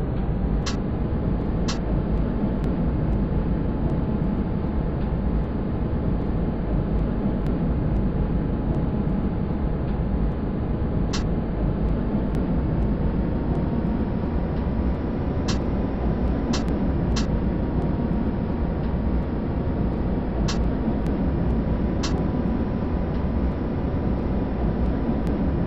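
A tram's motor hums steadily as it rolls along the track.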